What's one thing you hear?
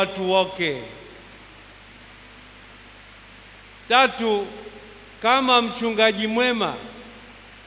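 A man speaks slowly and calmly through a microphone, with pauses, in a reverberant space.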